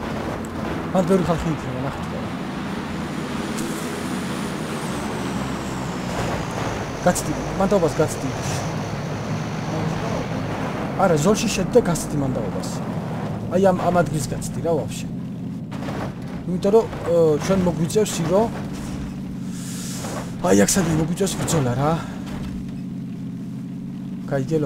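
A car engine hums steadily as a car drives over rough ground.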